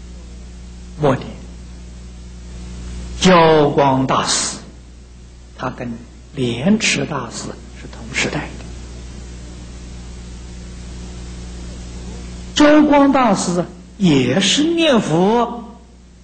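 An elderly man speaks calmly and slowly through a microphone, with long pauses.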